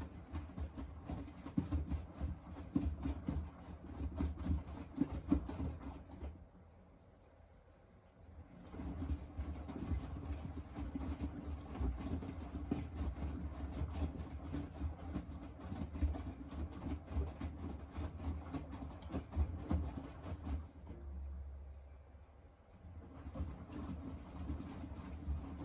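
A washing machine motor hums low and steady.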